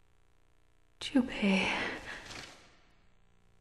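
A young woman speaks quietly and close.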